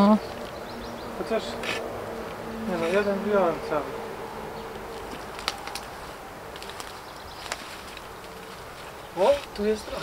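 A spade scrapes and digs into compost.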